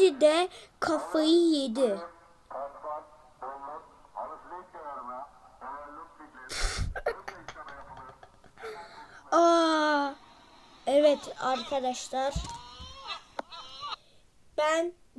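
A young boy talks excitedly close to a microphone.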